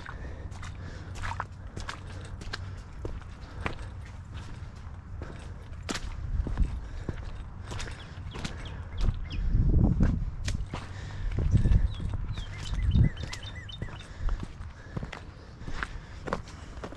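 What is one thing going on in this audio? Footsteps crunch and scuff on a wet rocky trail.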